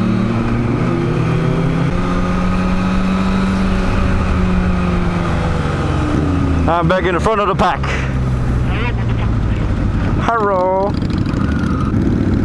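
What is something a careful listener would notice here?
A motorcycle engine hums steadily close by.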